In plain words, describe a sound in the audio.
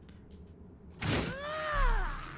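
An explosion bursts loudly with a crackle of sparks.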